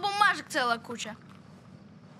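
A boy speaks in a high, pleading voice nearby.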